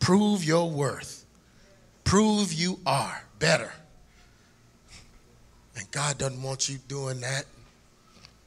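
A man preaches loudly and passionately through a microphone in a large hall.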